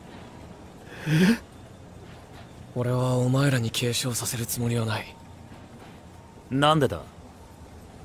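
A man asks a short, surprised question.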